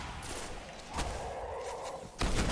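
A punch lands with a heavy thud.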